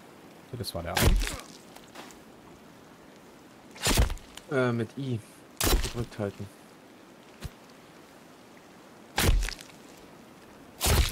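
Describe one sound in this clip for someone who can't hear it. An axe chops heavily into something, blow after blow.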